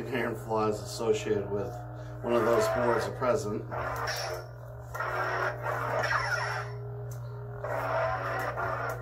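A toy light sword hums steadily.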